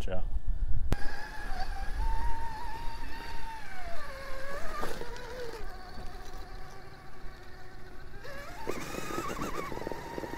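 A small electric motor whines close by, rising and falling in pitch.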